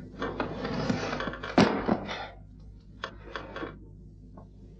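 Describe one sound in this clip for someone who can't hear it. A man grunts loudly in a struggle.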